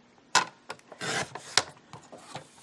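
A paper trimmer blade slides and slices through card.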